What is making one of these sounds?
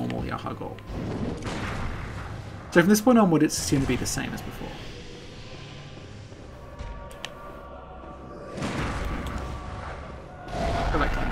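Metal blades clash and slash in a fight.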